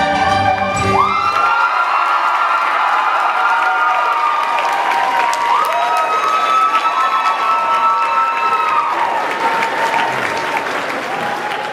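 Audience members whistle shrilly.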